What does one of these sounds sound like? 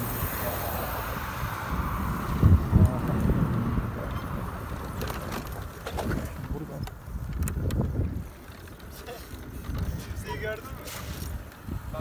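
Wind rumbles and buffets against a moving motorcycle.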